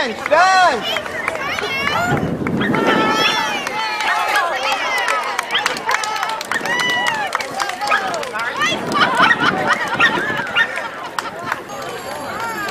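A crowd of older people cheers and calls out nearby, outdoors.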